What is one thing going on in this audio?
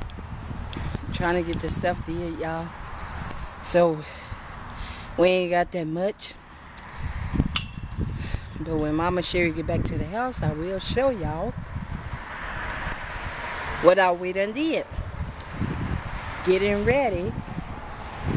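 A man speaks nearby in a casual tone.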